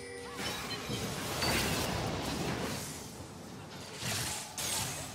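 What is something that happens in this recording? Magical blasts whoosh and crackle in a fast fight.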